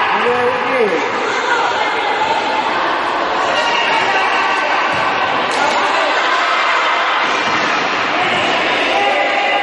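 A ball thuds as it is kicked on a hard floor.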